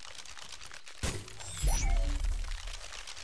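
A magical burst whooshes and crackles with a rising shimmer.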